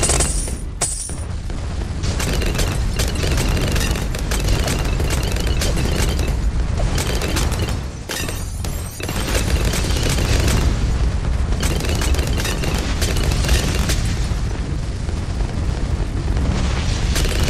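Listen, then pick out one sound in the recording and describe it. Game explosions and popping sounds go on rapidly and continuously.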